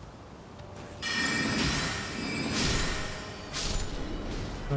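A magic spell bursts with a bright shimmering whoosh.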